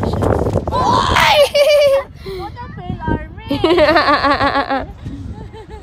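A young child squeals and babbles excitedly nearby.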